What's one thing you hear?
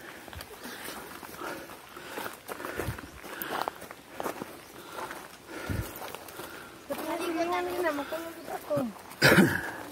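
Footsteps crunch on leaves and dirt along a path.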